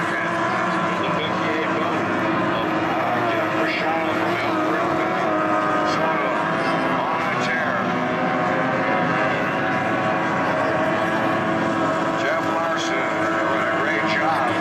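Racing powerboat engines roar and whine loudly as the boats speed across the water.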